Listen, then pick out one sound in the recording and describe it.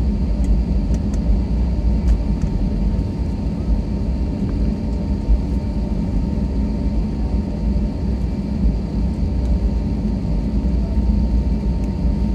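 The airliner rumbles over the ground as it rolls along.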